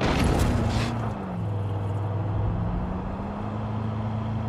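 A car engine drops in pitch as the car slows, then rises again.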